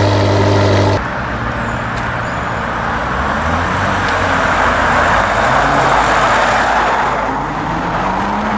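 A sports car engine revs loudly and roars as the car pulls away.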